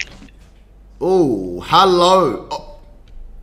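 A young woman speaks through an online call.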